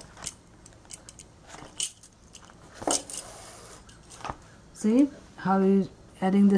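Stiff fabric rustles and crinkles as hands handle it.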